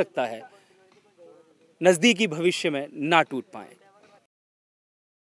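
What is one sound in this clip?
A young man speaks into a microphone outdoors.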